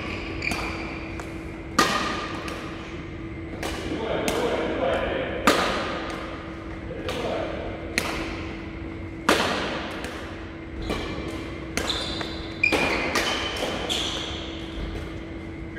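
Rackets smack shuttlecocks in a large echoing hall.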